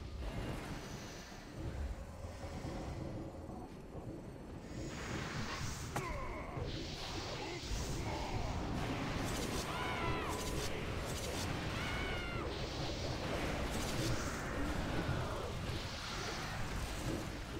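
Fantasy battle sounds of spells and clashing weapons crackle and whoosh.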